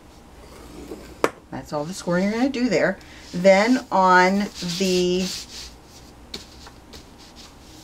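A sheet of paper slides across a hard board.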